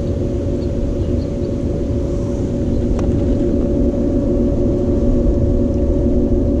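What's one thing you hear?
Water swirls and bubbles in a pool skimmer.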